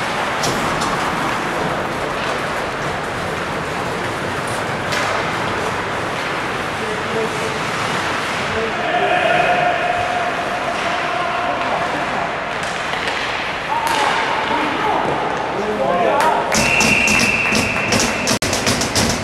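Skates scrape and swish across the ice in a large echoing rink.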